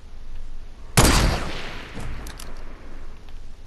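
A rifle fires a single loud shot that booms and rings out.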